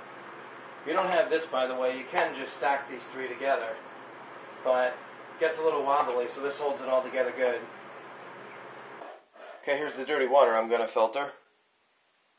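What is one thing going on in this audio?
A person talks close by.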